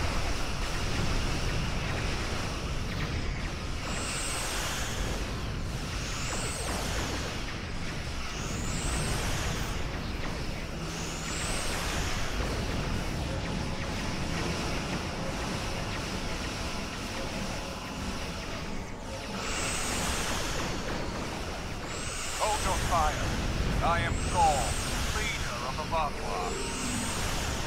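Explosions rumble and crackle.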